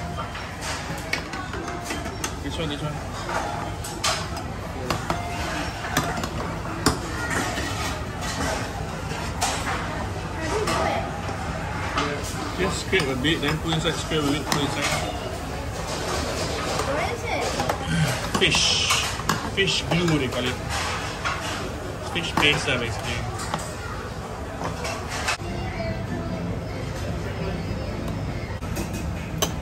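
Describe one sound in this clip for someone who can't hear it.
Metal utensils clink against bowls and plates.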